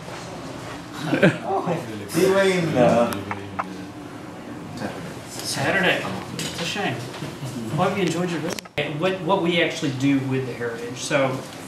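A man speaks calmly to a small group nearby.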